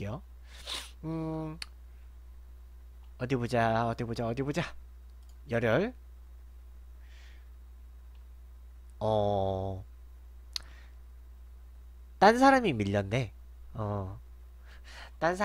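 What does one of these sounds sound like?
A young man talks with animation into a close microphone, in short bursts with pauses.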